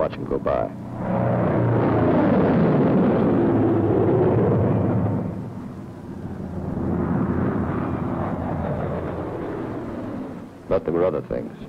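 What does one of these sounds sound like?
Propeller aircraft engines roar overhead, swelling and fading as planes pass.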